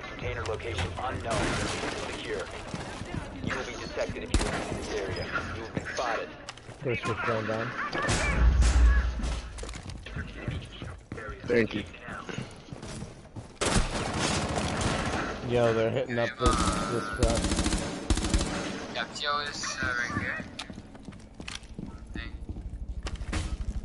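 Wooden planks splinter and crack as a barricade is torn down.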